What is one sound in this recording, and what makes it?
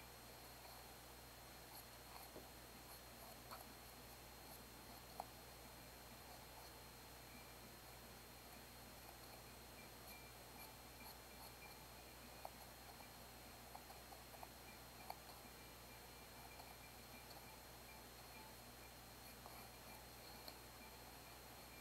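A paintbrush taps and brushes softly on paper.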